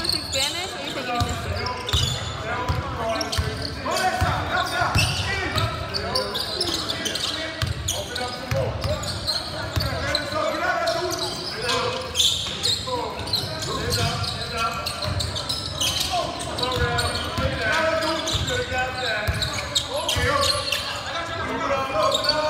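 A crowd of spectators talks and cheers in an echoing gym.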